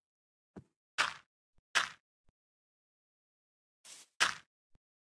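Blocks of dirt thud softly as they are set down.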